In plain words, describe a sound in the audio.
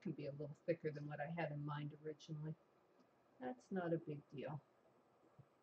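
An elderly woman speaks calmly close to a microphone.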